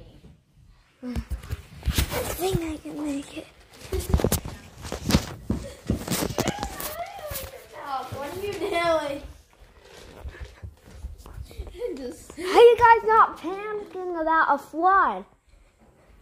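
A young boy talks excitedly close to the microphone.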